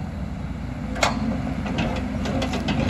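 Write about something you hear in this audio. Dirt and stones knock and scrape against a metal bucket.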